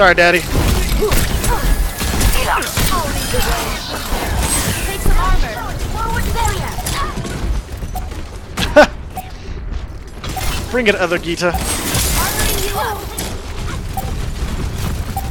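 Gunfire and blasts from a video game ring out.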